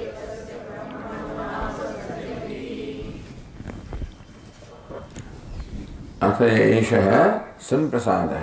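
An elderly man speaks calmly into a headset microphone.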